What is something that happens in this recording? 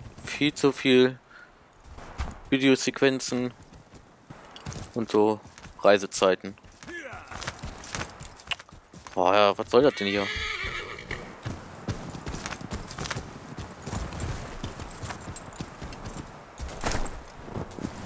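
A horse's hooves crunch steadily through snow.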